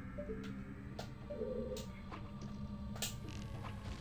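A slingshot snaps as it fires.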